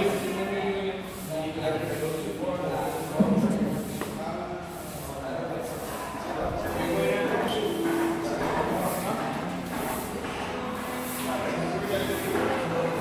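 A young man talks calmly nearby in a large echoing hall.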